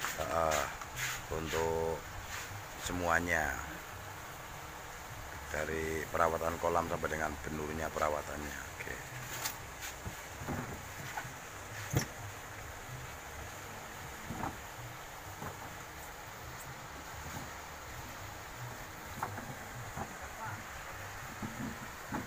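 Foam boxes thud and scrape as workers stack them.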